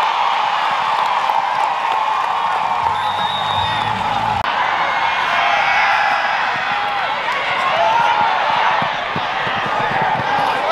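A crowd cheers loudly in a stadium.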